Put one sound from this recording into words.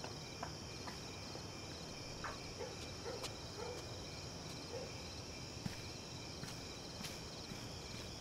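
Footsteps walk across grass and a path.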